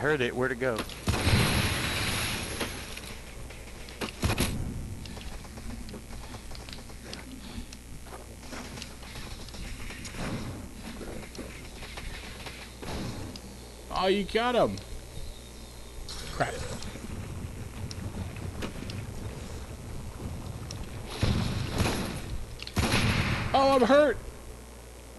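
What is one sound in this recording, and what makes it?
A blaster gun fires a rapid burst of crackling shots.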